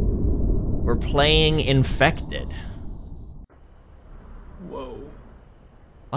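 A young man speaks with excitement close to a microphone.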